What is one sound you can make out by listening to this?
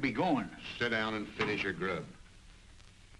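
A younger man speaks nearby.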